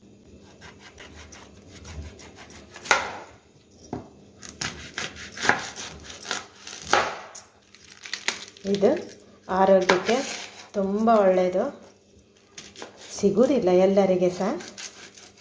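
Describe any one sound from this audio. A knife scrapes and cuts against a cutting board.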